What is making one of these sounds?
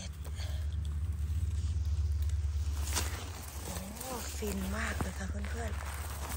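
A knife cuts through a mushroom stem.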